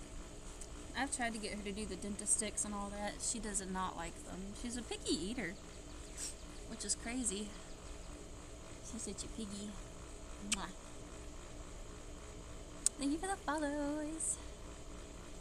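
A young woman talks close by, calmly and playfully.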